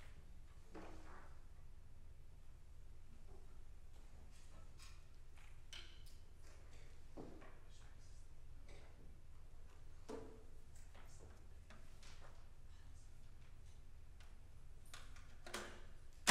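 Instruments knock and bump softly as they are handled.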